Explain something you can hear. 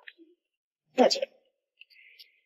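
A young woman speaks briefly and politely, close by.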